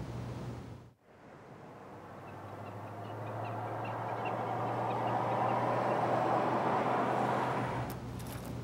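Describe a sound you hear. A car approaches along a road, its sound growing louder.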